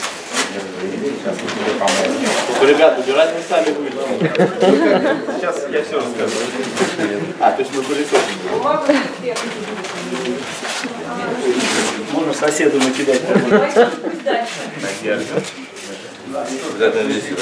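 Paper rustles and crinkles as it is folded.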